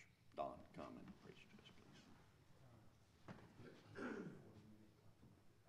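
An older man speaks calmly into a microphone in a large room.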